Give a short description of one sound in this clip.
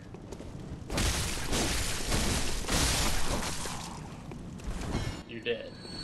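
A heavy blade strikes and slashes.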